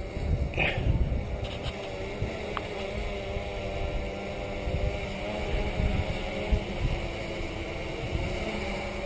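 A drone buzzes steadily overhead.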